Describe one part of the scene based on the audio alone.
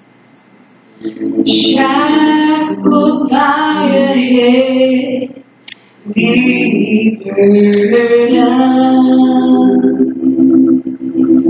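A woman sings through a loudspeaker in a large echoing room.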